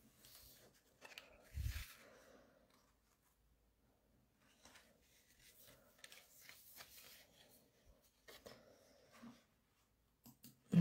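Paper rustles and slides as hands handle sheets of card.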